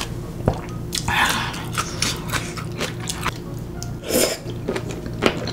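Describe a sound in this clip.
A young woman breathes out loudly through her mouth after spicy food.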